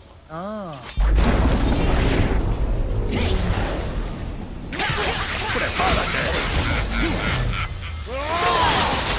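Loud clashing and thuds of a fierce fight ring out.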